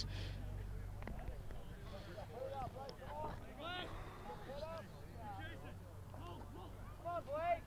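Men's voices call out faintly across an open field during a rugby match.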